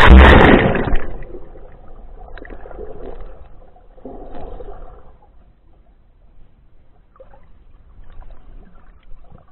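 Water rumbles and bubbles, muffled, as if heard underwater.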